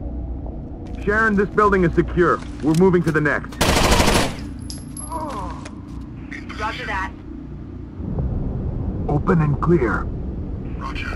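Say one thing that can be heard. A young man talks.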